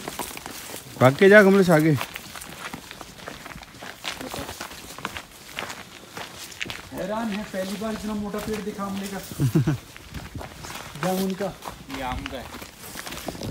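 A young woman talks nearby, casually.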